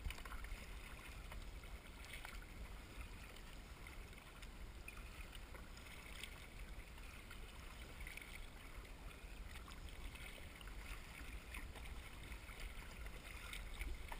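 A paddle dips and splashes into the water.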